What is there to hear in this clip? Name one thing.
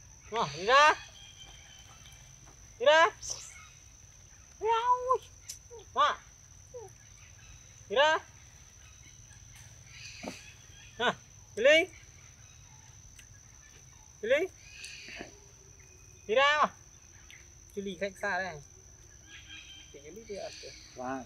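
Monkeys call out with short, sharp cries, close by.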